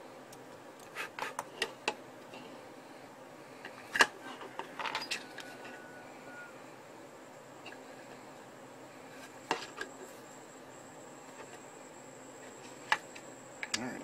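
Small plastic parts click and snap together in the hands.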